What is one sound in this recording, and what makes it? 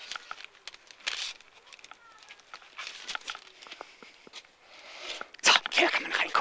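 Paper wrapping rustles and crinkles close by.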